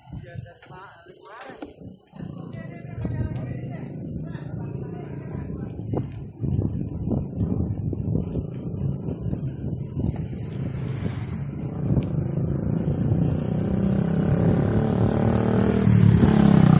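Bicycle tyres roll along a paved road.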